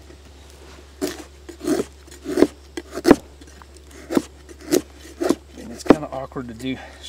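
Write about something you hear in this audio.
A hatchet chops into dry wood with sharp knocks.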